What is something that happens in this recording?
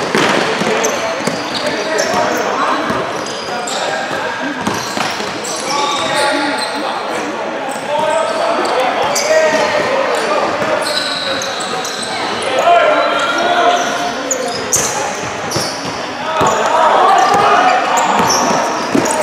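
A crowd of young people shouts and cheers in an echoing hall.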